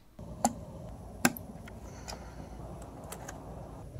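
A cable plug clicks into a socket.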